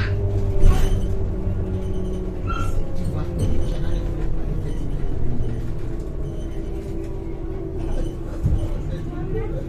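The bus body rattles and clatters over bumps.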